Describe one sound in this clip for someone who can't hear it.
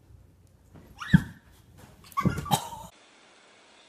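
A child thumps onto a sofa.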